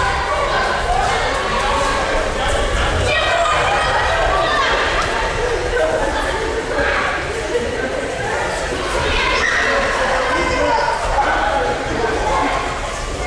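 Bare feet thud on mats as people run.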